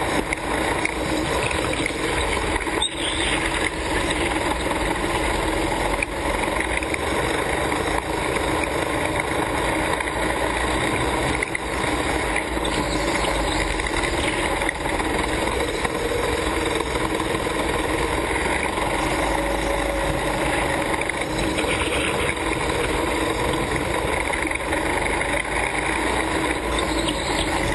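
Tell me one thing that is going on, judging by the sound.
A go-kart engine buzzes loudly up close, revving as it speeds around an indoor track.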